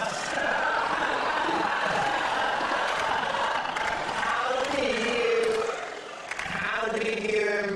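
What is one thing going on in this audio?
A man speaks with animation.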